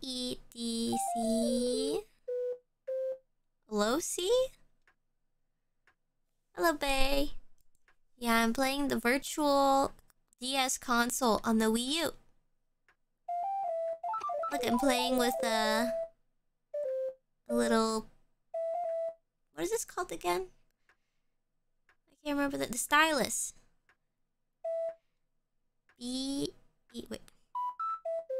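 A young woman talks with animation into a microphone, close up.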